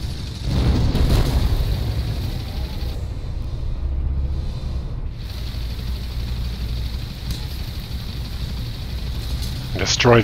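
A tank engine rumbles low.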